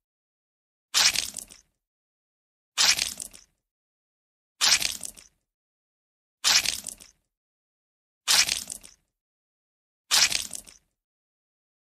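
Wet paint splats down in sharp bursts, about every two seconds.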